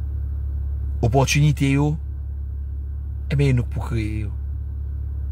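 A man speaks calmly and close to the microphone, in short phrases.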